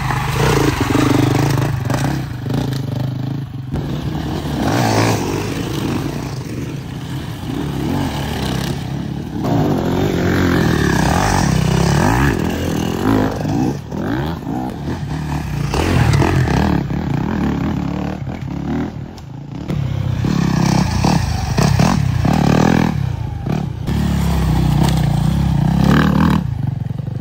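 Dirt bike engines rev and roar loudly up close.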